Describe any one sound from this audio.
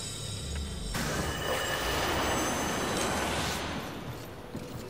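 A blade strikes and a body bursts apart with a crunch.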